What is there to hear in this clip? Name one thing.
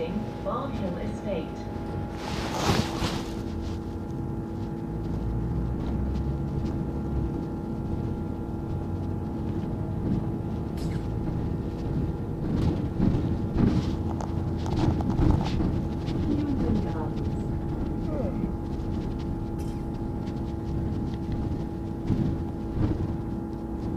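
A bus engine hums steadily as it drives.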